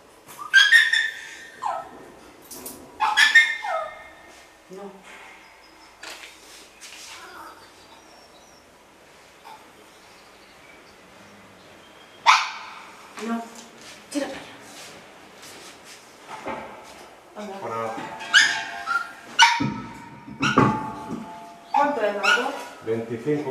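An elderly woman talks to a dog with animation, close by.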